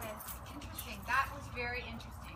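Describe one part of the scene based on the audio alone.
A woman calls out nearby, outdoors.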